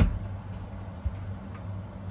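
A metal utensil scrapes on a plate.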